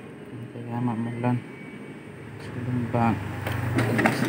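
A machine button beeps.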